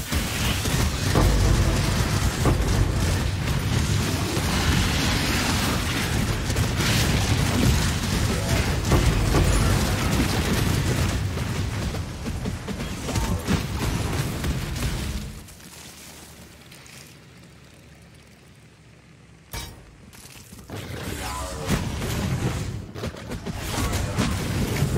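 Game spells crackle and explode in dense bursts.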